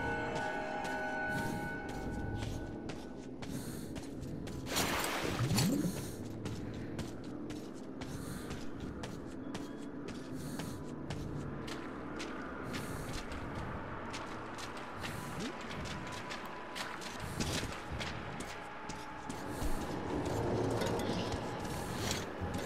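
Footsteps crunch steadily over rough ground.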